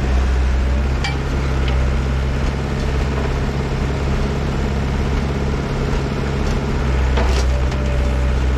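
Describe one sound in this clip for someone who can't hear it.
Logs knock and clatter as a grapple drops them.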